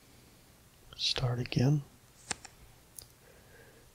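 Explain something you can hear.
A soft click sounds as a playing card is turned over.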